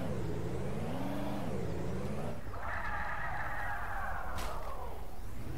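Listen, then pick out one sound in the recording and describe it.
A pickup truck engine hums and changes pitch as the truck drives and slows down.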